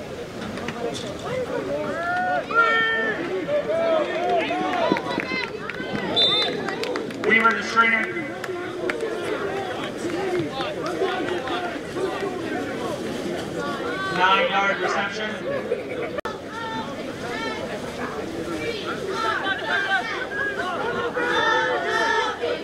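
A crowd of spectators and players cheers and shouts outdoors.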